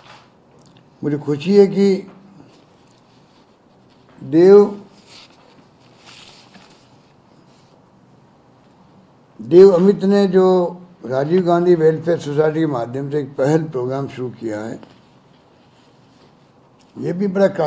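An elderly man speaks slowly and calmly, close to a microphone, with long pauses.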